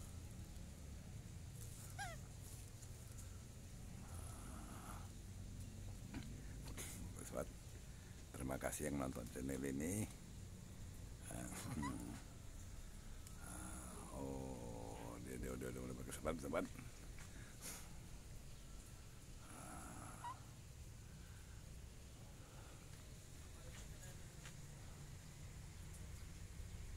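Leaves and branches rustle as a monkey climbs in a tree.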